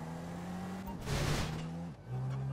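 A car smashes through a wooden fence with a loud crash.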